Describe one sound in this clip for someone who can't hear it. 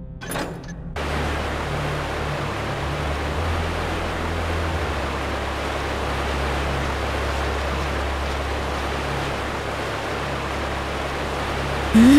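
Water rushes with a steady roar.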